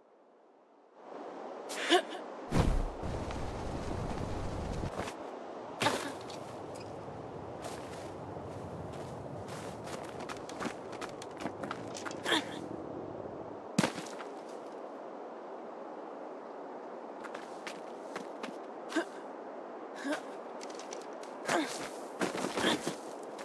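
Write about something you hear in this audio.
Wind blows steadily and loudly outdoors.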